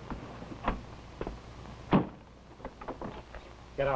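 A car door clunks shut.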